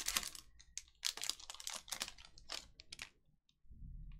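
A foil wrapper crinkles and tears as it is pulled open.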